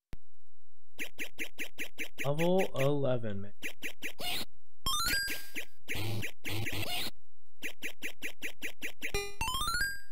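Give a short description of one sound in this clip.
Arcade game sound effects beep and bleep in a quick rhythm.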